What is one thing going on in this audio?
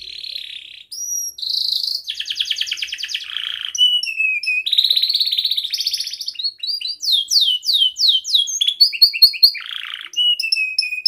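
A canary sings close by in a long, varied song of trills and whistles.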